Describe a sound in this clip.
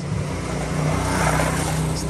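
A motorcycle engine runs nearby.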